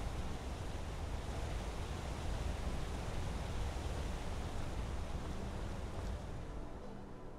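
Footsteps tread on a stone path.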